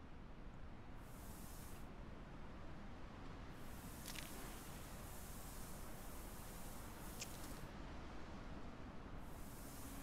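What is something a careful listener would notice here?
Sand pours out of a sack onto the ground in short hissing bursts.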